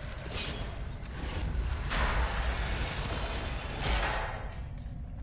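A magical whoosh swells and fades.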